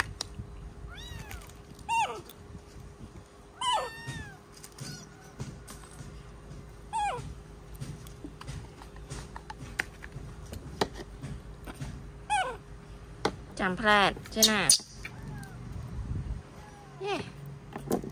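A baby monkey squeaks and squeals in short high cries.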